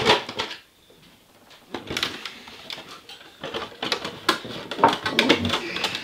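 A plastic car body clicks and rattles as a man fits it on a model car.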